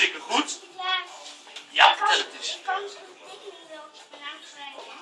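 An elderly man speaks warmly and closely.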